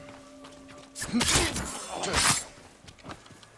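A sword swishes and strikes with loud bursts.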